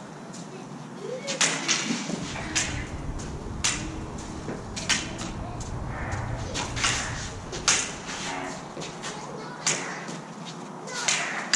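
Feet shuffle and scuff on a hard floor.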